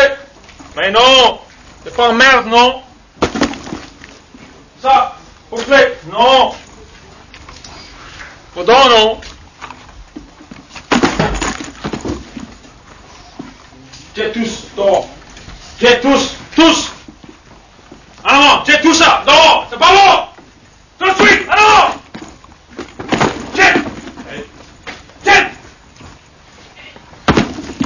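Men talk and shout urgently, close by.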